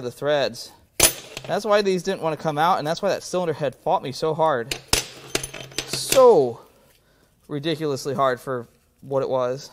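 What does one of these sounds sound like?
Metal bolts clink against each other.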